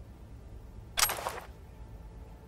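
A short burst of noise sounds as an item is picked up.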